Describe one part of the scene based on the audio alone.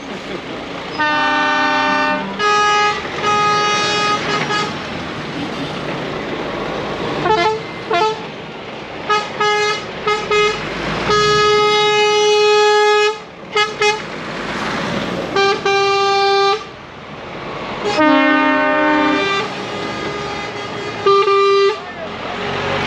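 Truck air horns blare loudly in repeated blasts.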